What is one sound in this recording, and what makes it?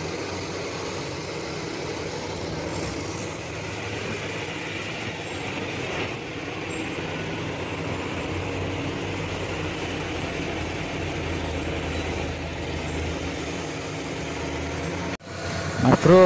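Heavy machine engines rumble steadily.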